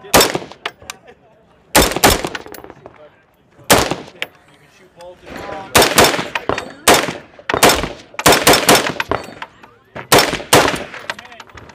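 Rifle shots crack loudly outdoors, one after another.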